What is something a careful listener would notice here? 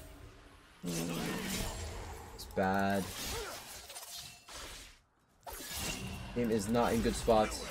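Fantasy game combat effects whoosh and clash.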